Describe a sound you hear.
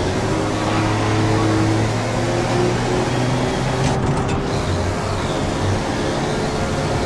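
A racing truck engine roars at full throttle.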